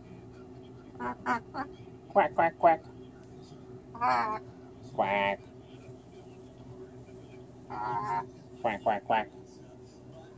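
A cockatoo squawks and chatters in short bursts close by.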